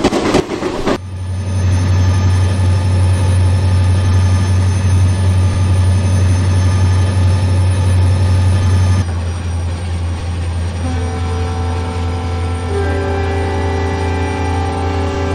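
Train wheels rumble over rails.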